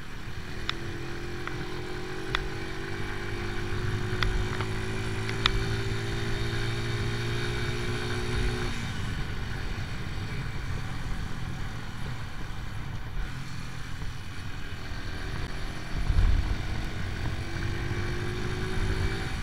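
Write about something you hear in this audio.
A motorcycle engine hums steadily, easing off and then picking up again.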